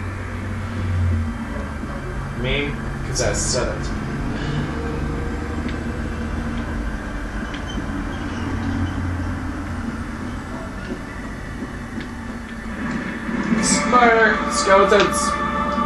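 Video game sound effects play through a television speaker.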